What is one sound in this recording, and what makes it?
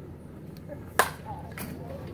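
A metal bat cracks sharply against a baseball.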